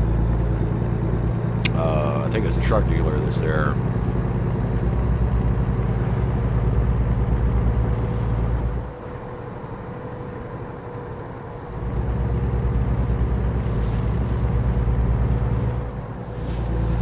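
A truck engine hums steadily with a low drone.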